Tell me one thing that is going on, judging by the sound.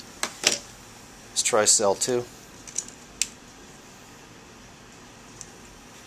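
Metal clips click as they are handled.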